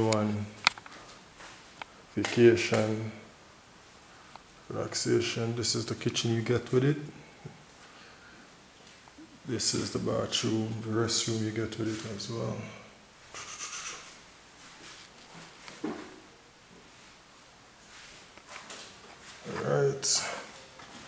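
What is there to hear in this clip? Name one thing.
A man talks calmly close by, in short bursts with pauses.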